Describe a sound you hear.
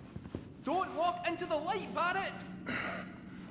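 A man's voice calls out animatedly.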